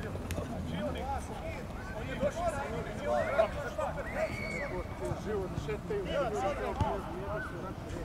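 Young men shout to each other in the distance, outdoors on an open field.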